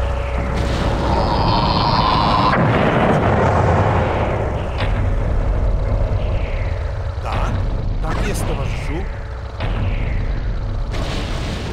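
Guns fire and small blasts go off in a battle.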